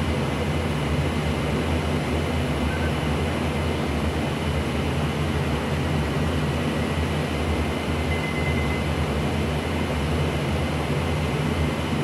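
A propeller aircraft engine drones steadily and loudly.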